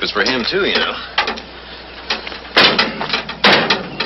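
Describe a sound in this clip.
A van door slams shut.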